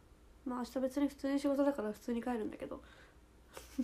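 A young woman speaks close to a microphone in a high, lively voice.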